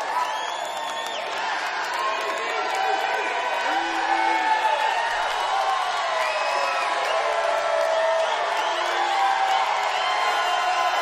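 People in a crowd whistle loudly.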